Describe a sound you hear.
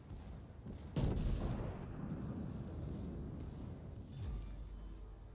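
Heavy guns fire with a deep boom that rumbles away.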